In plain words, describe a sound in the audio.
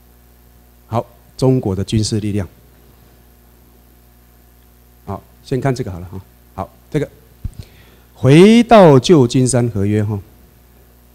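A man speaks through a microphone to an audience, in bursts with long pauses.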